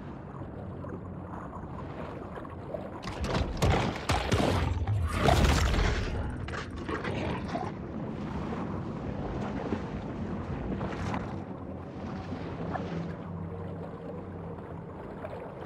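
Water swirls and gurgles underwater.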